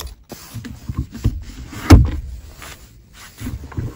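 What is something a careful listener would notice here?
A lid clicks shut.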